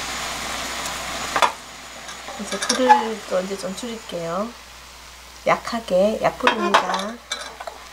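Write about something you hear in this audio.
Sauce bubbles and sizzles in a pot.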